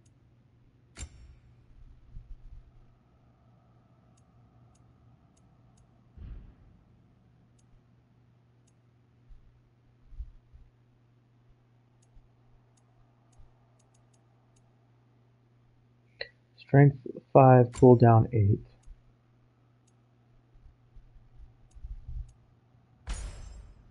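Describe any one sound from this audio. Soft menu clicks sound as selections change.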